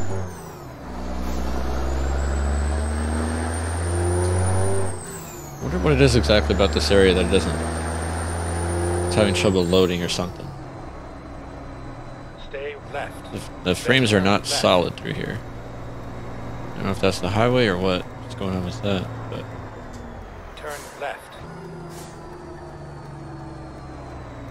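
A heavy truck engine rumbles steadily, rising and falling in pitch as it shifts gears.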